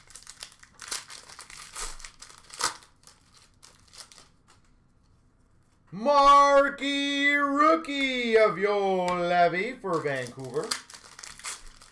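Foil card wrappers crinkle and rustle as hands tear them open.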